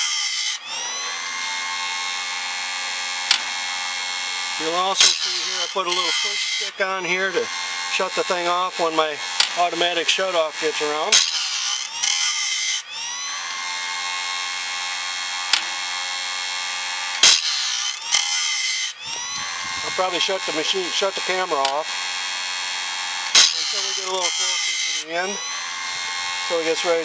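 A grinding wheel whirs steadily with a high whine.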